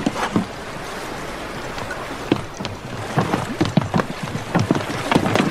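An oar splashes and slaps against water.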